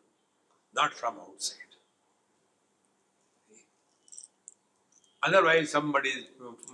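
An elderly man speaks calmly into a close microphone, pausing between phrases.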